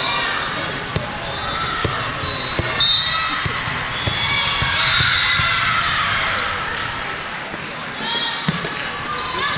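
A volleyball is struck with a smack.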